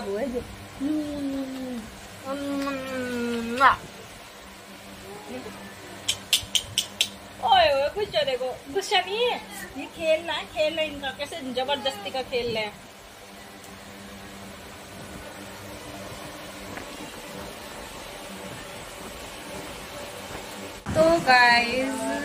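A young woman talks playfully up close.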